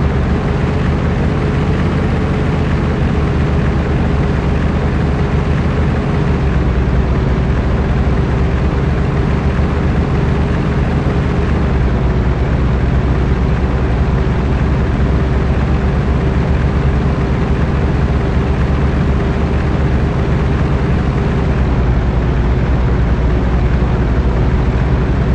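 Tyres roll over a gravel road.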